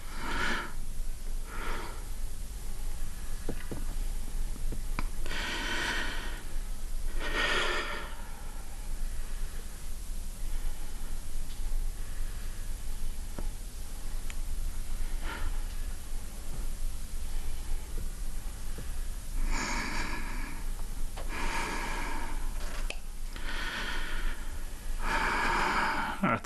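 An elderly man speaks close by in a shaky, tearful voice, with long pauses.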